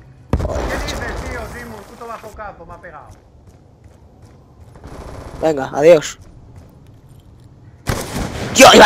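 A rifle fires with a loud bang.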